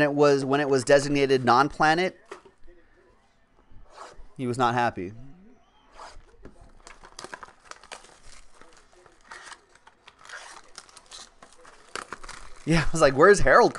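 Plastic wrap and cardboard boxes rustle and crinkle as hands open them.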